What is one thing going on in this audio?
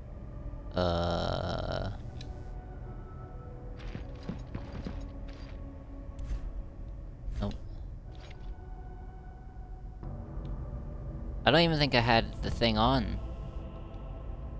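Magical energy crackles and roars in bursts.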